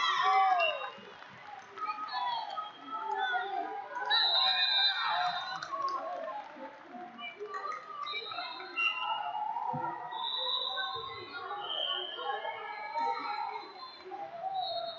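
A crowd of spectators chatters in a large hall.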